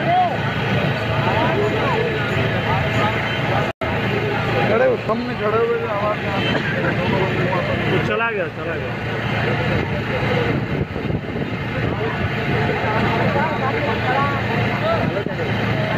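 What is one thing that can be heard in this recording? A man speaks loudly and with animation to a crowd outdoors.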